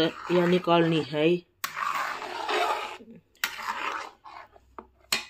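A spoon stirs and scrapes through a thick mixture in a metal pan.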